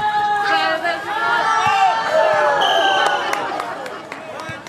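Young women shout and scream excitedly outdoors.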